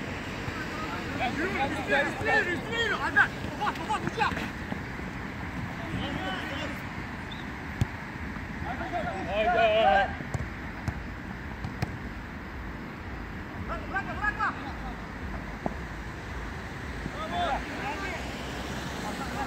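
Men playing football shout to each other across an outdoor pitch.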